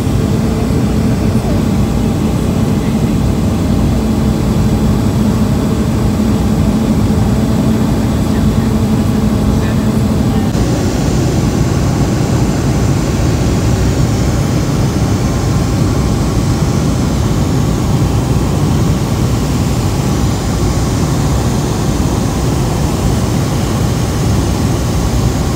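The piston engine of a single-engine light aircraft drones in cruise, heard from inside the cabin.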